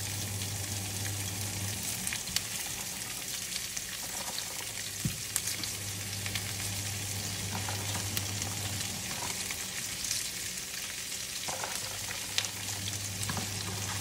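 Cabbage pieces drop into a pan with soft rustles and taps.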